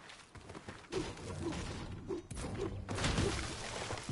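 A pickaxe strikes wood with sharp thuds.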